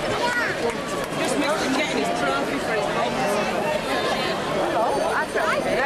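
A crowd of adults and children chatters all around outdoors.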